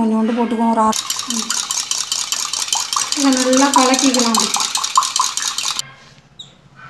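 A fork whisks eggs briskly in a metal cup, clinking rapidly.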